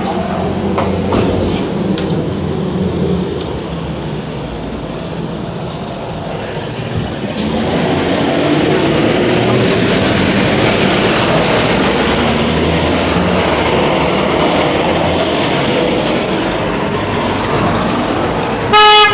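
Traffic hums steadily along a city street outdoors.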